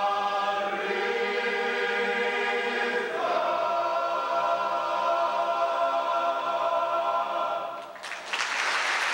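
A large choir of children sings a held final chord in a big hall.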